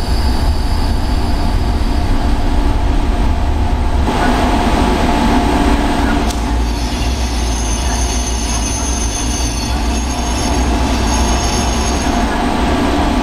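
Train wheels clatter over rails.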